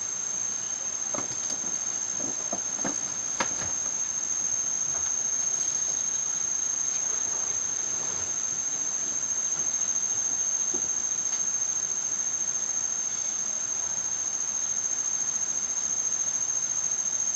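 Leaves rustle as monkeys climb in a tree.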